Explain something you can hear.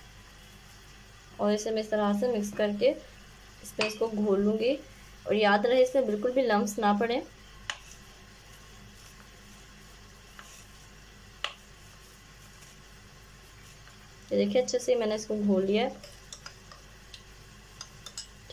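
A spoon stirs and clinks against a glass.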